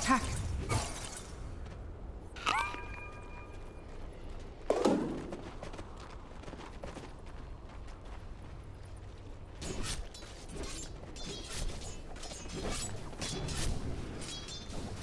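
Magic spell effects whoosh and chime.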